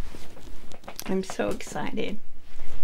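An elderly woman speaks warmly and close by.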